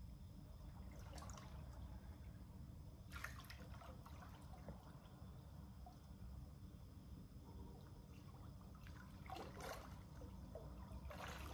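Water splashes as a person swims in a pool.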